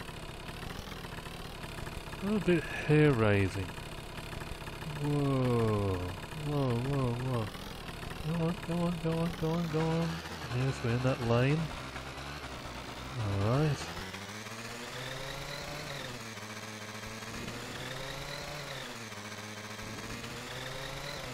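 A scooter engine hums steadily, rising and falling in pitch as it speeds up.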